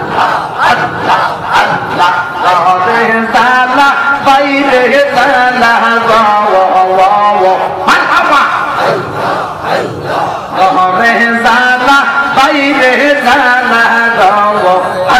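A man chants loudly and melodiously through a microphone and loudspeakers.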